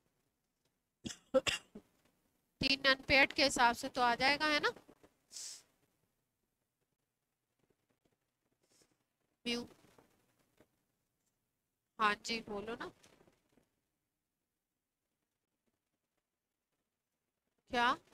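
A woman speaks through a close microphone in short bursts, explaining calmly.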